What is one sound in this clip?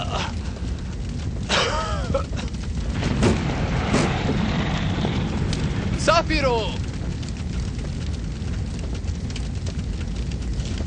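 A fire roars with a low, steady rumble.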